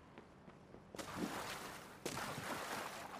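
A body splashes into water.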